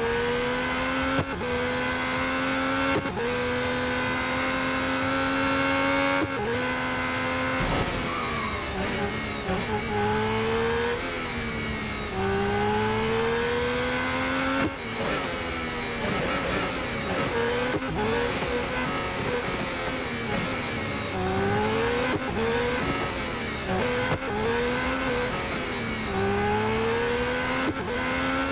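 A racing car engine whines loudly, rising in pitch as it speeds up and dropping sharply at each gear change and braking.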